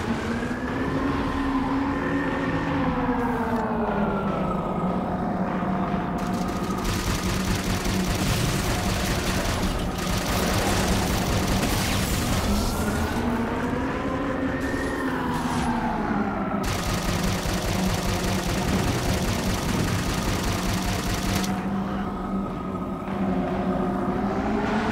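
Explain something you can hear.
A flying craft's engine hums and whines, slowly rising and falling in pitch.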